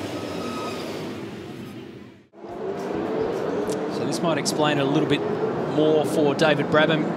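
Several race car engines roar and whine, rising and falling in pitch as the cars speed past.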